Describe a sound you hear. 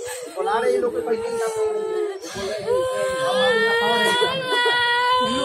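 A group of young women sing together close by, with long held notes.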